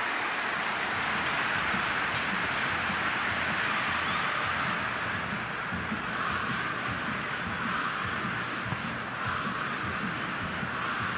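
A stadium crowd roars.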